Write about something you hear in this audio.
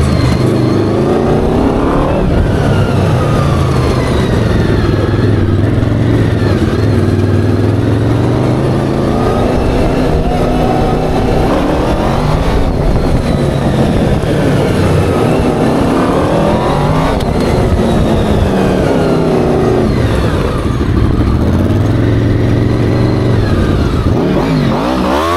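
Tyres skid and scrub on asphalt.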